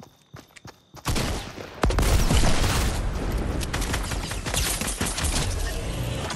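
Gunfire bursts rapidly and loudly.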